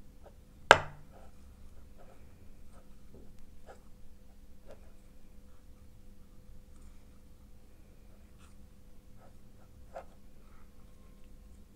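Strawberries knock softly against the inside of a metal cup.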